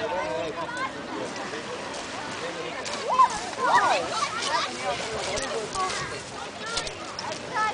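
Small waves lap on a pebble shore.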